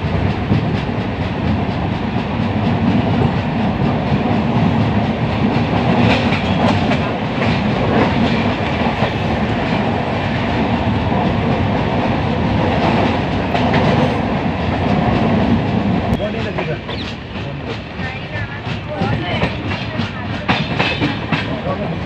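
A train rumbles along the tracks at speed.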